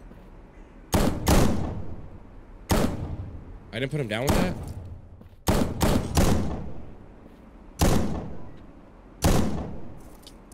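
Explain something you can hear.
Gunshots fire one after another, each sharp and ringing briefly.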